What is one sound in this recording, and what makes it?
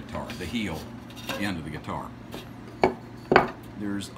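A thin wooden strip taps and knocks against wood.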